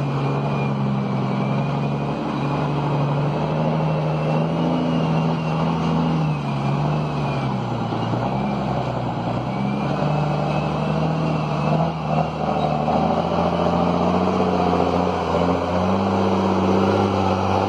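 A heavy diesel truck engine rumbles and labours, drawing closer.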